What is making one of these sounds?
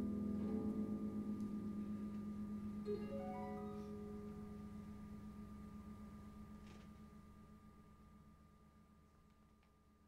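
A piano plays sustained notes that slowly fade away.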